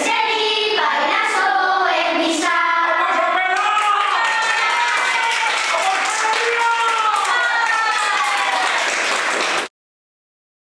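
A group of children sing together loudly and cheerfully.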